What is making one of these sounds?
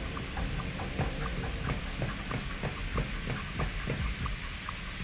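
Heavy metal footsteps clank quickly up stairs.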